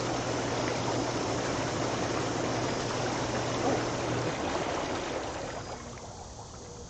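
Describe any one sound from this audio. Water churns and bubbles steadily in a hot tub, then stops.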